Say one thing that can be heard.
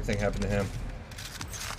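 A man speaks into a close microphone.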